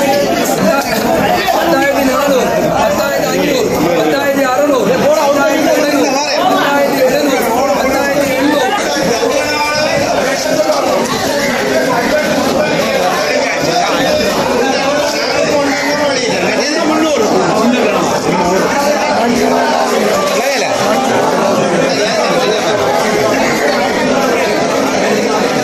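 A crowd of men talk and call out all around, close by.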